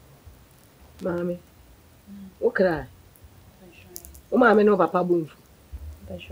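An elderly woman speaks with feeling.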